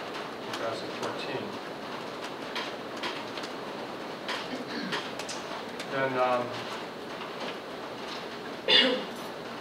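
A man speaks calmly into a microphone, heard in a room with some echo.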